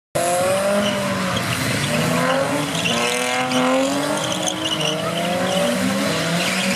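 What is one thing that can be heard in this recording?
A quad bike engine revs up and down loudly.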